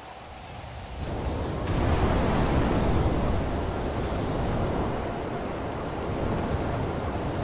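A jet engine roars loudly.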